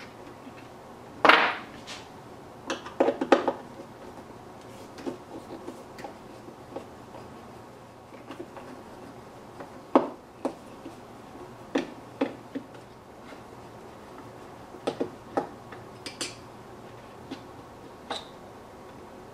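A screwdriver clicks and scrapes against metal screws.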